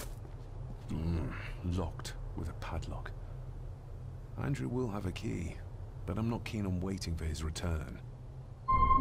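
A man speaks calmly and quietly.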